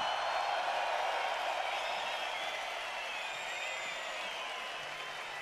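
A huge crowd cheers and whistles loudly outdoors.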